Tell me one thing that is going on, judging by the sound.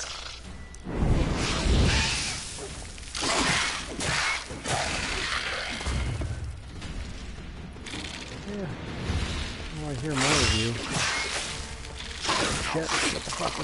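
Swords clash and strike in a fast fight.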